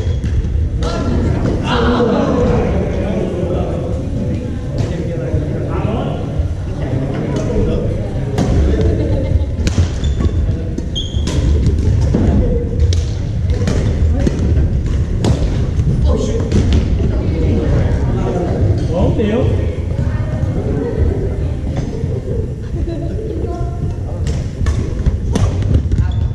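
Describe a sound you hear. Voices of young men and women chatter, echoing in a large hall.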